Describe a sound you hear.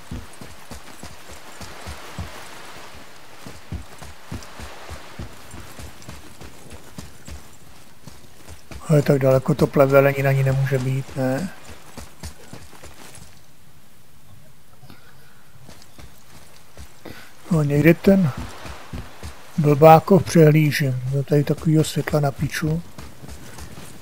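Heavy footsteps thud steadily on stone.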